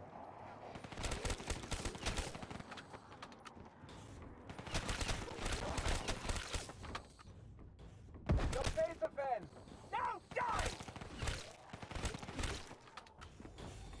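Rapid gunfire bursts loudly in quick volleys.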